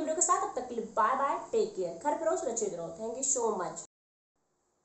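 A young woman speaks calmly and closely into a microphone.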